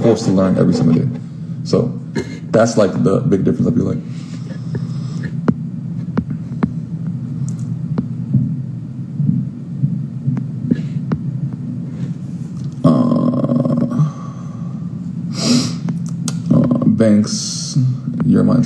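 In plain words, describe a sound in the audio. A young man talks calmly and close up.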